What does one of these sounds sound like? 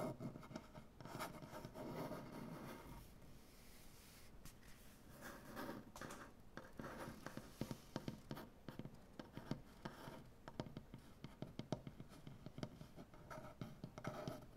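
Fingertips tap and scratch lightly on a wooden surface.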